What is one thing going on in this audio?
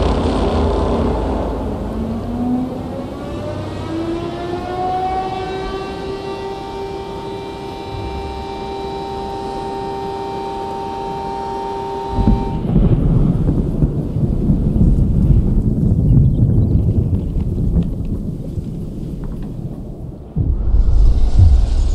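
Wind howls and roars in a heavy snowstorm.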